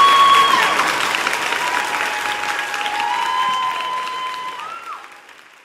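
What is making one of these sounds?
A mixed choir sings in close harmony in an echoing hall, then fades away.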